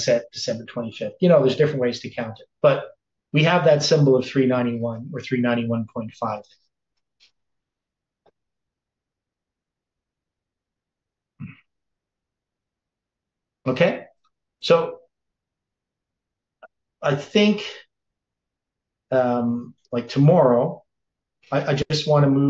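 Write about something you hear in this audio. An elderly man speaks calmly and close to a microphone, with pauses.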